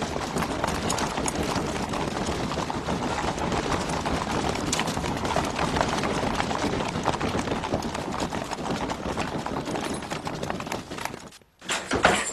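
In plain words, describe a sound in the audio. Many footsteps tramp on packed dirt.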